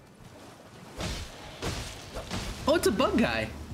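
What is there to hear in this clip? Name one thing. Hooves splash through shallow water.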